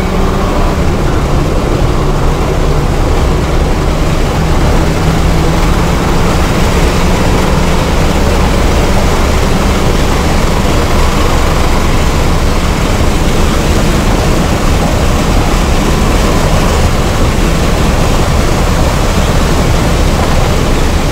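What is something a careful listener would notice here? A turbocharged four-cylinder hatchback accelerates hard at full throttle, heard from inside.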